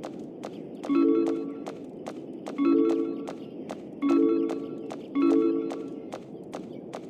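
A bright chime rings as an item is picked up.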